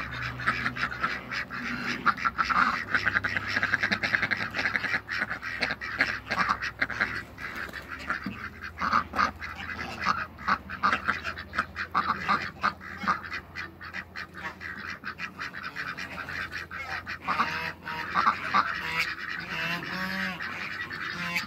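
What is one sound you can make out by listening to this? Ducks quack loudly and often, close by.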